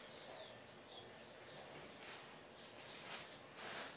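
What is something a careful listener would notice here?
Fingers scrape and rustle through loose soil.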